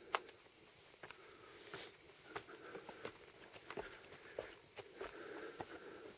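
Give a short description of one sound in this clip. Footsteps scuff on stone steps outdoors.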